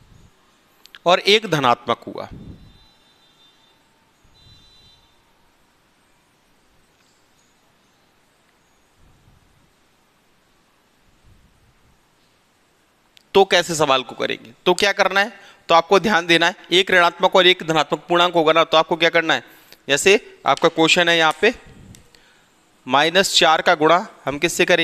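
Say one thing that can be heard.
A man speaks clearly through a close microphone, explaining calmly.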